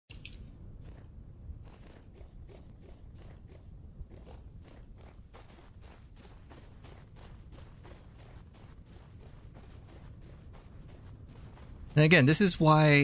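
Footsteps crunch steadily over soft ground and gravel.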